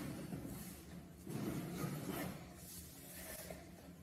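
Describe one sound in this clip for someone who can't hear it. A cardboard lid lifts off a box.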